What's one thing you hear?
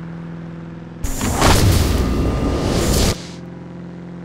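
A nitro boost whooshes loudly.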